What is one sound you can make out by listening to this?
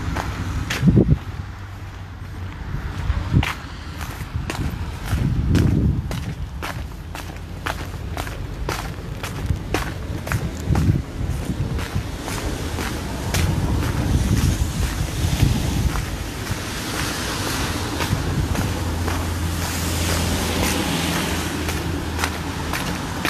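Rain falls on wet pavement outdoors.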